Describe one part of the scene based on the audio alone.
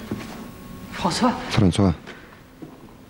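A man speaks briefly and forcefully, close by.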